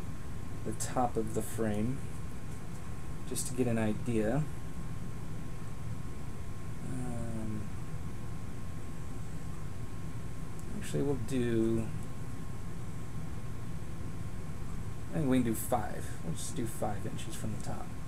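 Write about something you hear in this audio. A metal ruler taps and slides against a wooden frame.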